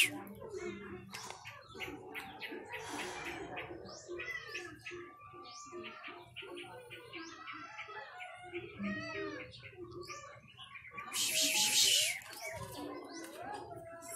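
Kittens mew in high, thin cries.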